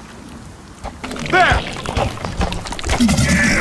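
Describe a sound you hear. A large creature growls and snarls.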